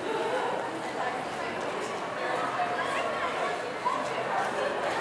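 A young woman laughs and talks nearby.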